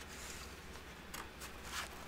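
A hand brushes across a page.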